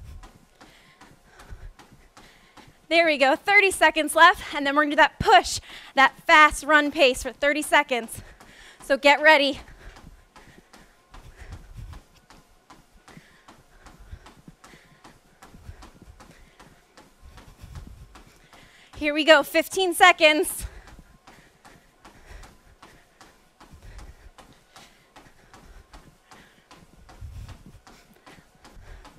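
Running footsteps thud steadily on a treadmill belt.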